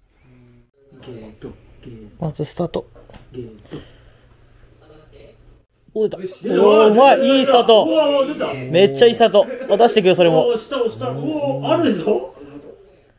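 A young man talks with animation close by, indoors.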